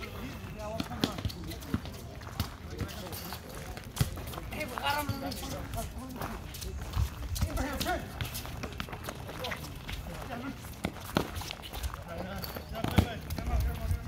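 A ball thuds off feet and bounces on a hard court.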